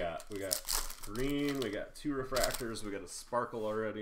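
Plastic wrapping crinkles as a pack is torn open.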